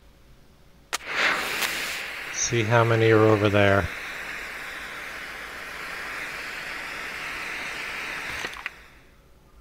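A steady magical hiss shimmers and then cuts off.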